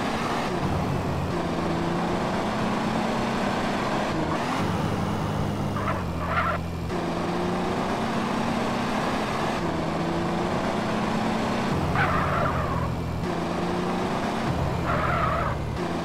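A car engine hums steadily as the car drives along.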